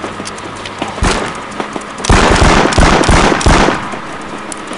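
Revolver shots ring out loudly, one after another.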